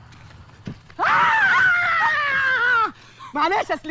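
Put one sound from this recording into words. A young woman squeals with delight.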